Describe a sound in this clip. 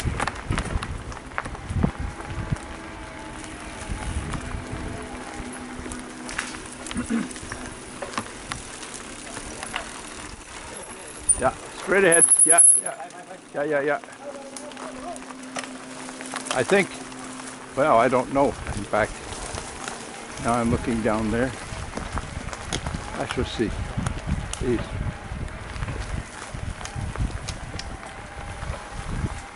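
Mountain bike tyres roll and crunch over a bumpy dirt trail.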